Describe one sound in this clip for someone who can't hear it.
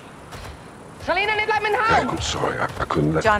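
A young man calls out.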